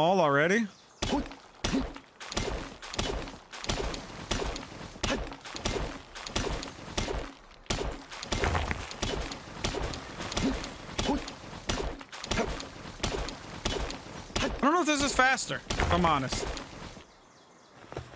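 A pickaxe strikes rock again and again with sharp knocks.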